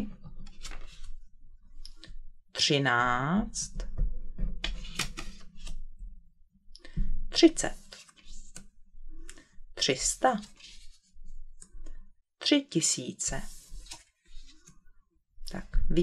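Paper cards slide and tap on a wooden table.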